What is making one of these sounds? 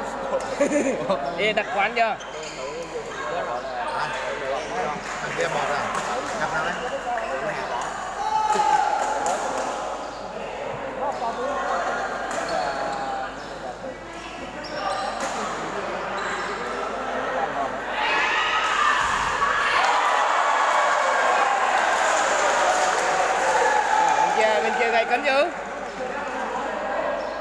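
A crowd of people chatter throughout a large echoing hall.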